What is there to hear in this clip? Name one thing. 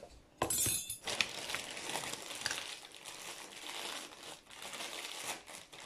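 A woman rustles a sheet of wrapping.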